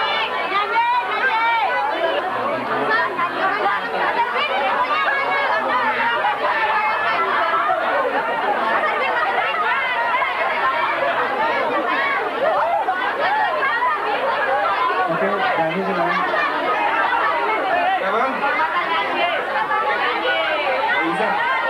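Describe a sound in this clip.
A crowd of young girls screams and chatters excitedly close by.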